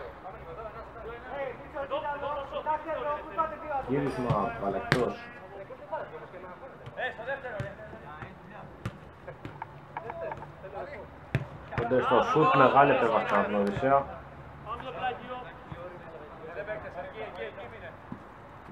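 Men shout and call out to each other across an outdoor pitch.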